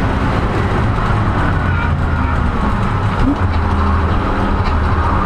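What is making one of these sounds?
Tyres hiss and rumble on the track surface.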